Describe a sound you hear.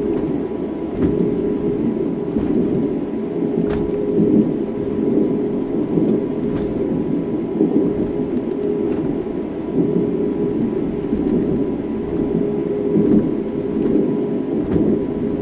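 Wheels clack over rail joints now and then.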